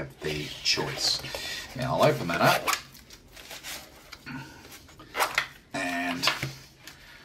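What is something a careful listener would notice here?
A fabric pouch rustles and scrapes.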